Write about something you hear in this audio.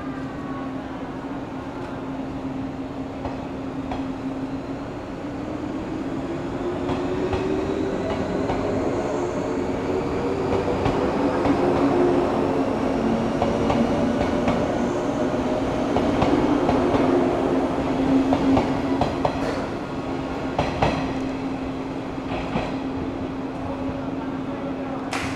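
A train rolls past close by, humming and rumbling.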